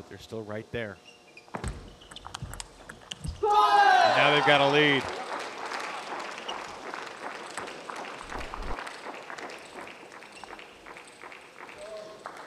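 A table tennis ball clicks quickly off paddles and the table in an echoing hall.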